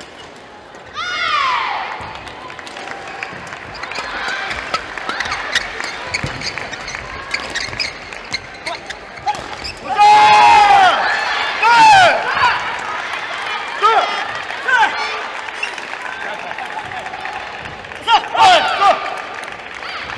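Shoes squeak sharply on a gym floor.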